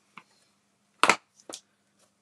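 A plastic stamp block knocks onto paper.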